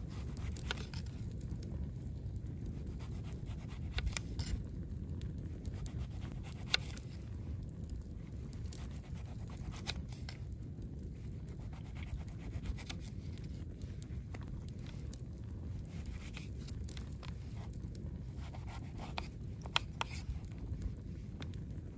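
A knife taps on a plastic cutting board.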